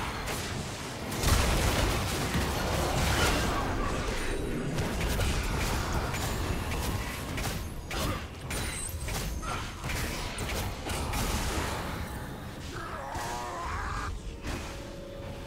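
Game spell effects burst and crackle in a fast fight.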